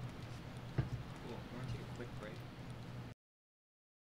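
A man speaks quietly into a microphone.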